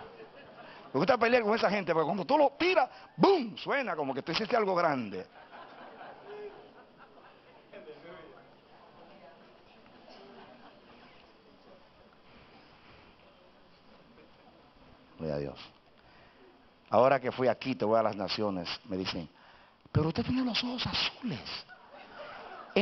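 A middle-aged man preaches with animation into a microphone, his voice amplified through loudspeakers in a large echoing hall.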